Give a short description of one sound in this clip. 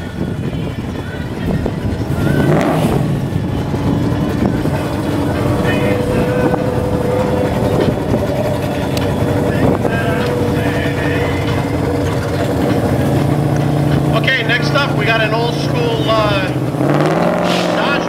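A car engine idles with a deep, lumpy rumble.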